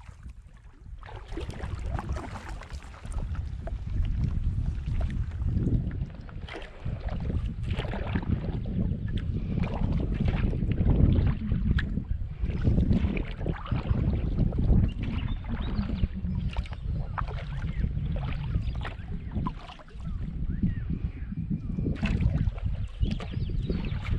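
A paddle dips and splashes in calm water with each stroke.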